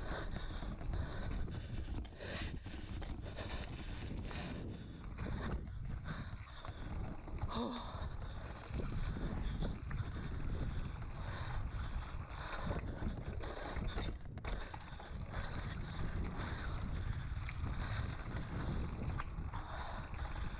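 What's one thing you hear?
Wind rumbles against the microphone as the bike speeds along.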